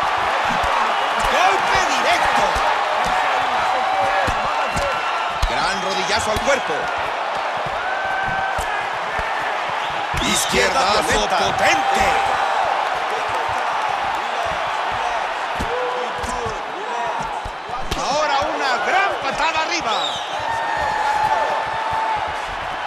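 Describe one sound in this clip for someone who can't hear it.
A crowd roars and cheers steadily throughout.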